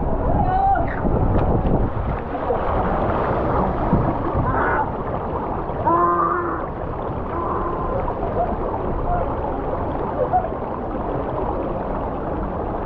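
Water rushes and splashes down a slide.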